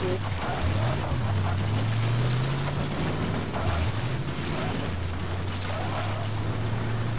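Tyres roll over a dirt road.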